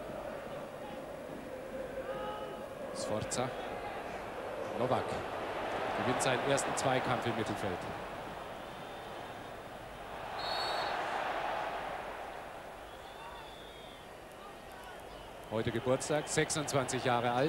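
A large stadium crowd murmurs and cheers outdoors.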